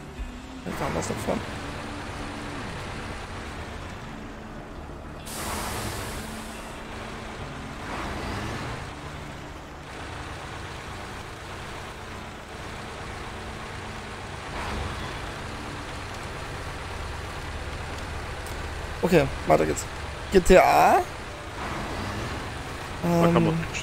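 A heavy truck engine rumbles steadily as the truck drives slowly.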